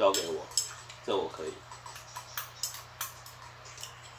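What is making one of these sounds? Chopsticks click against ceramic bowls.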